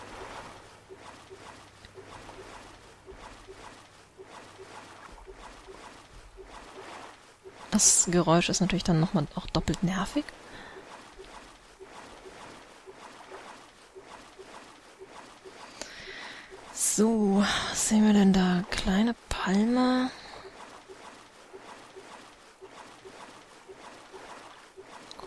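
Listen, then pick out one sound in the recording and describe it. A paddle splashes rhythmically through calm water.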